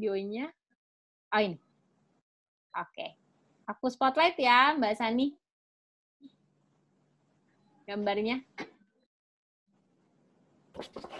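A young woman speaks with animation over an online call, in short bursts.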